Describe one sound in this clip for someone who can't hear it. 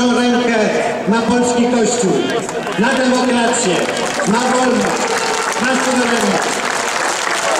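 A large crowd chants in unison outdoors.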